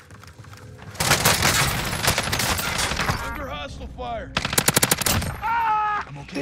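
Rapid gunfire bursts loudly, close by.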